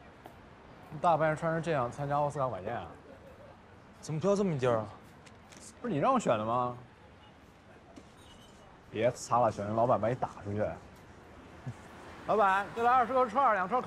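A young man speaks with mild irritation, close by.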